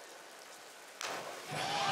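A diver splashes into water.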